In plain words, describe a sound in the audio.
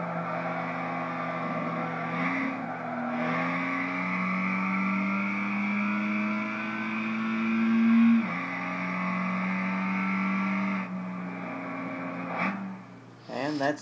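A racing car engine roars, revving up and dropping as it shifts gears.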